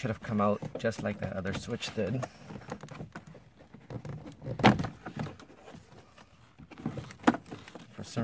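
Plastic clips snap and click as a door panel is pried loose.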